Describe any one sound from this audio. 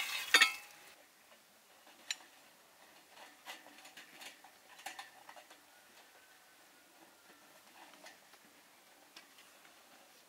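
A stick scrapes against a metal bowl.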